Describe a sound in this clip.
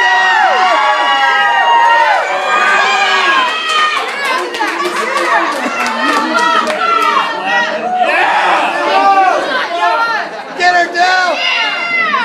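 A crowd of young men and women shouts and cheers excitedly indoors.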